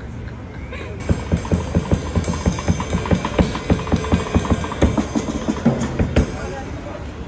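A street drummer plays a steady beat.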